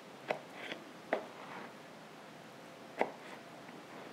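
A knife taps on a plastic cutting board.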